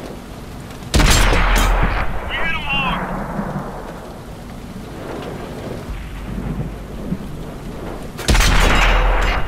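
A tank cannon fires with a loud booming blast.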